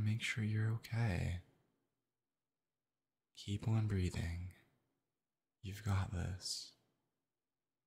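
A young man speaks softly and closely into a microphone.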